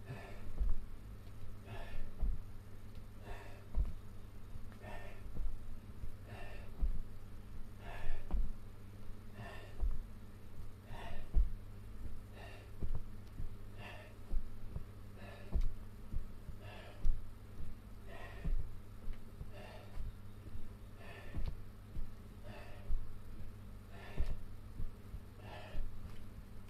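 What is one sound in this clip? A man breathes hard in short, regular bursts.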